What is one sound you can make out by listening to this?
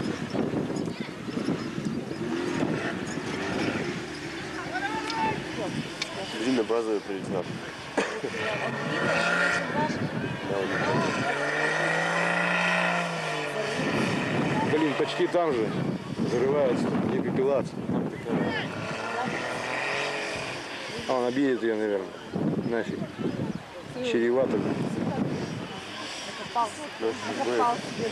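A crowd of spectators talk and call out nearby.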